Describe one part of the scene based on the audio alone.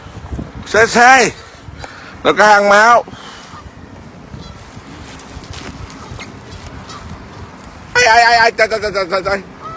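Canada geese honk close by.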